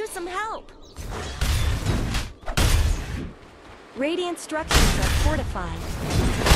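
Magic spells whoosh and burst during a fight.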